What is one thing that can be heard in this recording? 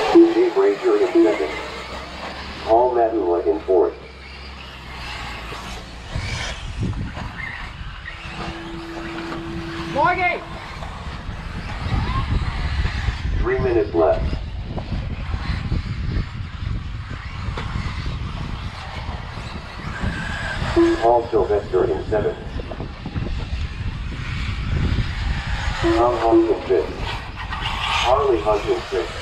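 Small electric model cars whine as they race over a dirt track.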